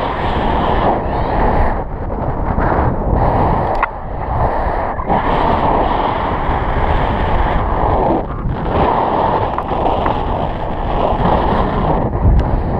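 Strong wind roars and buffets the microphone.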